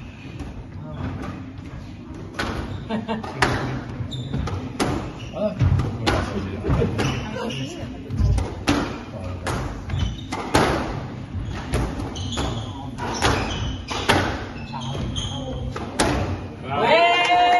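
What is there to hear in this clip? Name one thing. A squash ball smacks sharply off rackets and walls in a quick rally, echoing in a hard-walled room.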